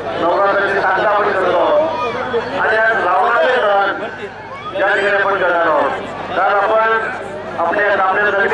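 A middle-aged man speaks loudly and with animation into a microphone over a loudspeaker, outdoors.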